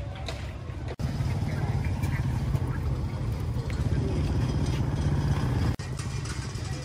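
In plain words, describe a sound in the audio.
A motorbike engine idles and rumbles close by.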